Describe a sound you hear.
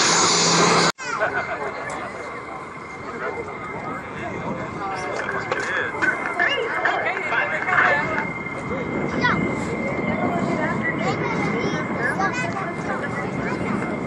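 Jet engines hum and whine steadily in the distance.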